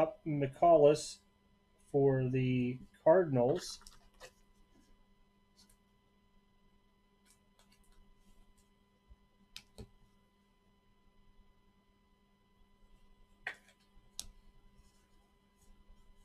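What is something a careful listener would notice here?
Trading cards rustle and slide as a hand handles them.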